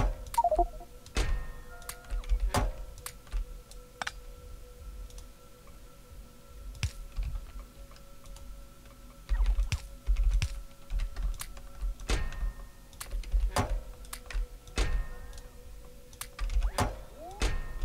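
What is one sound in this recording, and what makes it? Machines hum steadily.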